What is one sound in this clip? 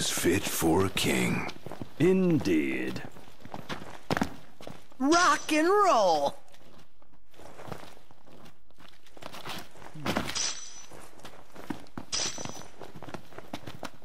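Footsteps run over dry grass and rock.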